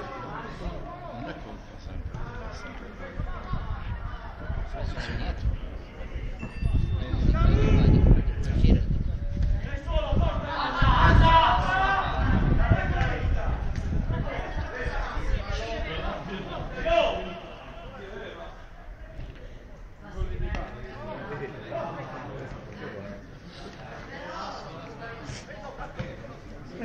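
Footballers shout to each other in the distance outdoors.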